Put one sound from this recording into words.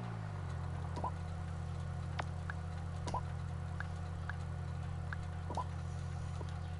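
A phone gives short beeps as buttons are pressed.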